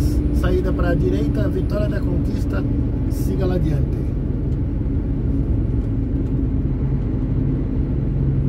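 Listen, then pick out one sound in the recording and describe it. A truck rumbles close by on the road.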